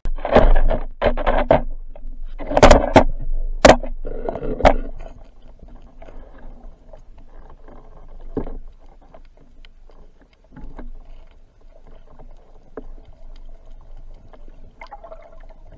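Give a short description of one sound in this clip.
Water rushes and bubbles, heard muffled from underwater.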